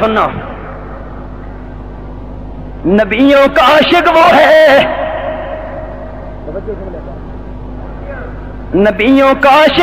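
A man preaches loudly and with fervour through a microphone, echoing over a loudspeaker.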